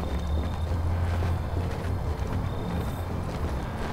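Soft footsteps move quickly over hard ground.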